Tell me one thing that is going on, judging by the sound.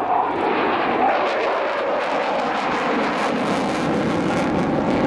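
Afterburners crackle and rumble as the jet climbs away.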